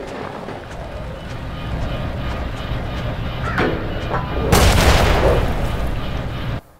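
A large cog grinds and rumbles low.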